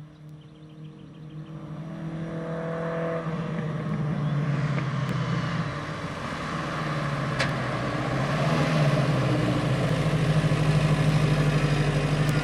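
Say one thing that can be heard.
A car engine roars as the car approaches, growing steadily louder.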